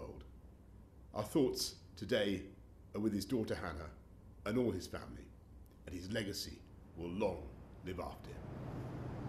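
A middle-aged man speaks calmly and solemnly into a close microphone.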